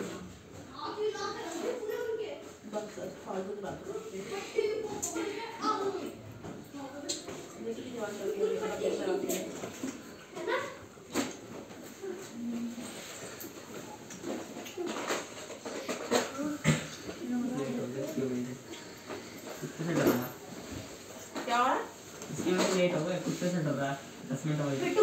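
Children talk quietly nearby.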